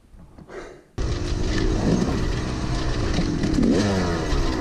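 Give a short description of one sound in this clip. A dirt bike engine revs loudly and unevenly.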